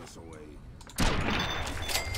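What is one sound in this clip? A gunshot fires with a loud bang.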